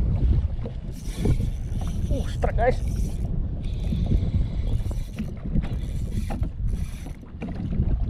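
A fishing reel's drag buzzes in short bursts.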